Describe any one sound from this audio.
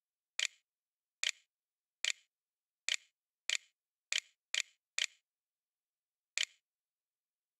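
Short sharp computer key clicks sound one after another.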